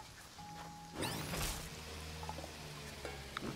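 A machine whirs and rustles through crops.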